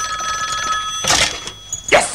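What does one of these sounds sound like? A man strikes something with a loud crash.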